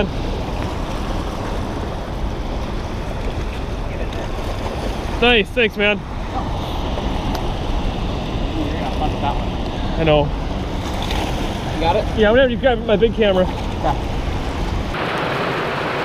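Fast water rushes and churns loudly.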